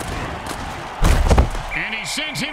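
Football players collide with a heavy thud.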